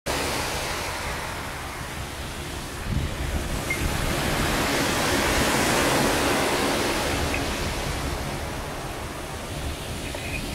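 Waves wash onto a pebble shore with a steady rushing roar.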